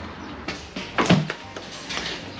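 A door latch clicks as a door is pushed open.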